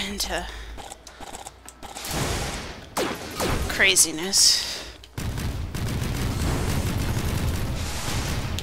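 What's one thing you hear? Electronic game blasts and zaps crackle rapidly.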